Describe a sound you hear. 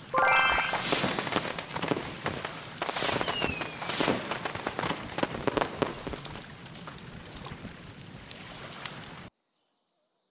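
Fireworks crackle and pop in a game's celebration.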